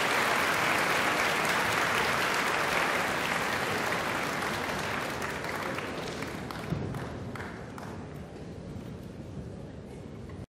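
Orchestral music plays loudly in a large hall and gradually fades.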